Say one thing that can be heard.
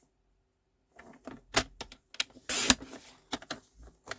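A paper trimmer blade slides and cuts through card.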